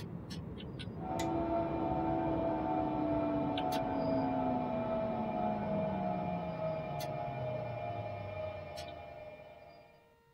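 An electric train motor whines and slowly falls in pitch.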